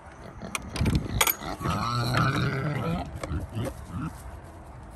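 A pig grunts and snorts close by.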